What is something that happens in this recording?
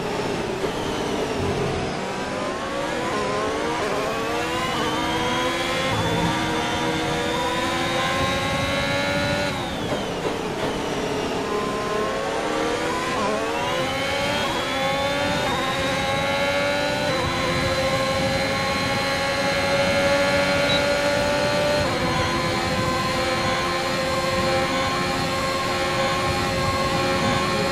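A racing car engine screams, rising in pitch as it speeds up through the gears.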